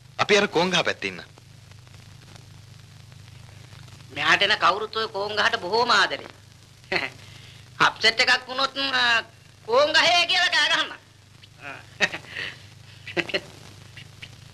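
A man talks with animation, close by.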